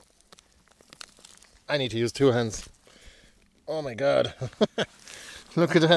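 Roots tear and soil crumbles as a plant is pulled from the ground.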